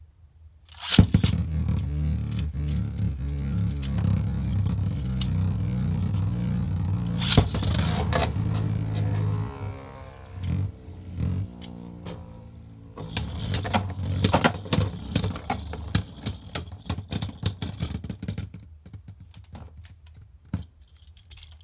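Spinning tops clack sharply as they collide.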